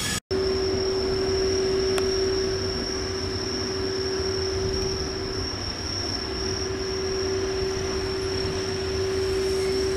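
An electric locomotive hums with a steady whine as it rolls slowly closer.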